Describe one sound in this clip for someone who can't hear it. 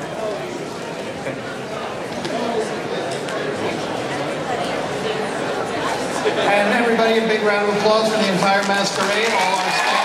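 A man speaks through a loudspeaker in a large hall.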